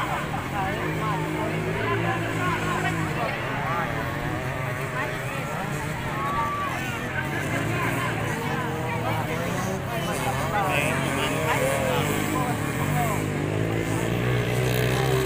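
A large outdoor crowd chatters and calls out.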